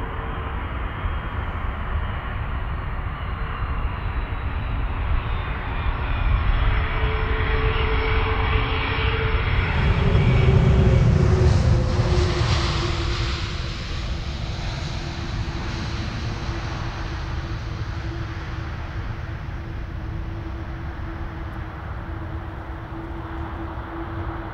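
A twin-engine jet airliner roars at takeoff thrust and climbs away.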